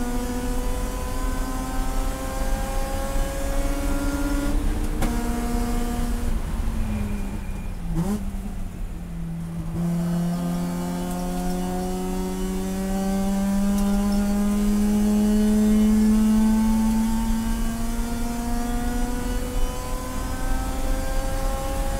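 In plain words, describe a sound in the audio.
A race car engine roars from inside the cabin, revving up through the gears.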